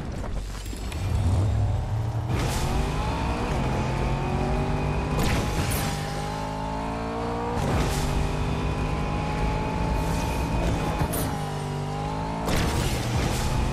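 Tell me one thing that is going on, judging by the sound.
A car engine revs and hums steadily, rising and falling in pitch.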